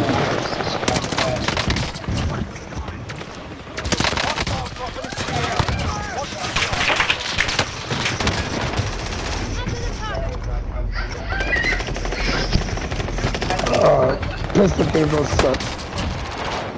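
Gunshots fire in rapid bursts close by.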